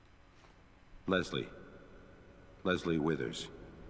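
A man speaks slowly and calmly, close by.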